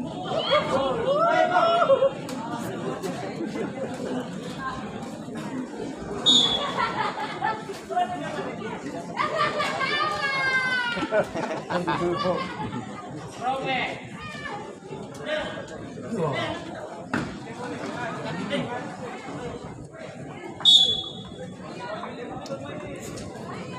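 Men shout and call out across an open court.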